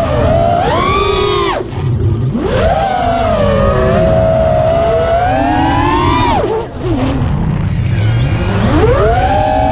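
The brushless motors of an FPV racing quadcopter whine and surge in pitch as the throttle goes up and down.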